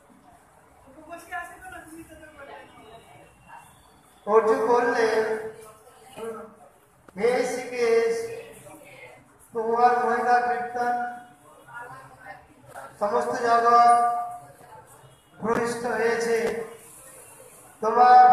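A man chants prayers in loud, drawn-out phrases nearby.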